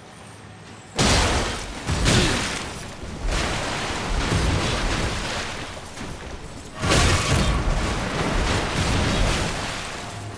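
Heavy weapon blows crash and clang in a fight.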